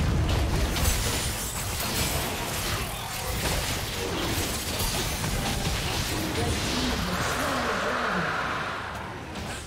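Spell effects crackle and burst in a game battle.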